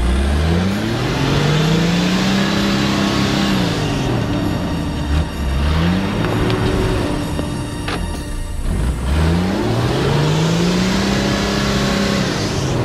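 Tyres churn and splash through thick mud.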